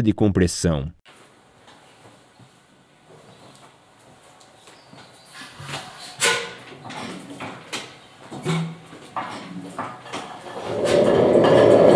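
A heavy flywheel is turned by hand with soft clanks.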